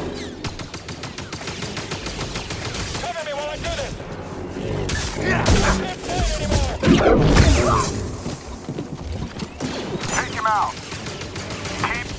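Blaster shots zap and crack.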